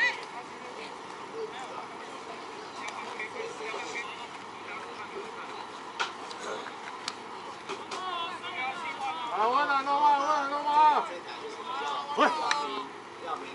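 Men call out across an open ball field, outdoors.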